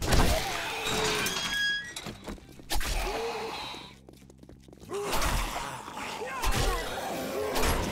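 A zombie growls and snarls close by.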